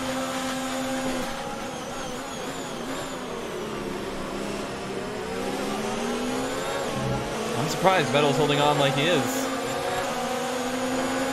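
A racing car engine screams steadily, its pitch rising and falling with gear changes.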